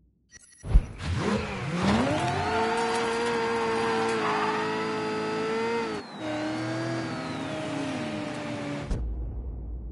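A car engine revs up and then roars steadily as the car drives along.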